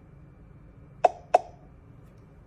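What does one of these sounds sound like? Fingertips tap lightly on a glass touchscreen.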